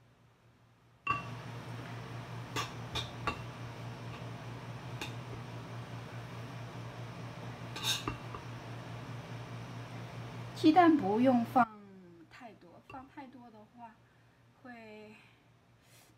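A spoon scrapes and clinks against a bowl.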